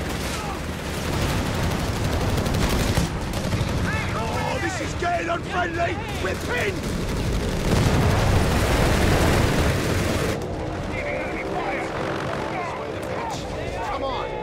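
Tank engines rumble low and steady.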